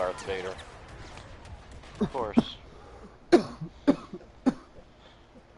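Blaster guns fire in sharp bursts.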